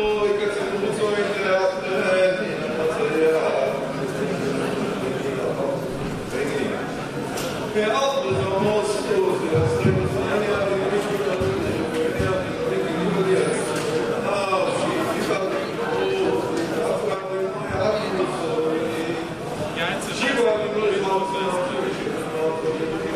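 Many men chant and sing together in a large echoing hall.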